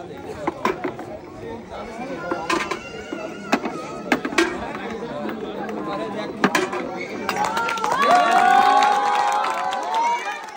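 Small balls clatter and roll down a plastic ramp.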